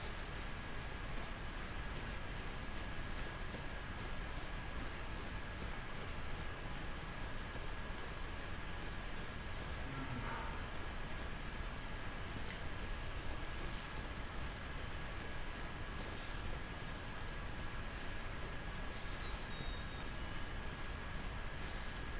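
Footsteps swish steadily through tall dry grass.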